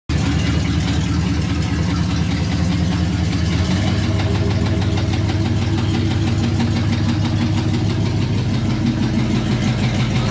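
A car engine runs with a loud, rough rumble that deepens partway through.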